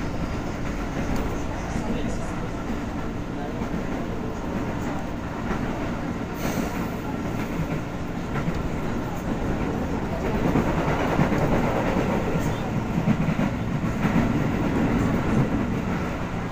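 A train rumbles steadily along the tracks, louder in the second half.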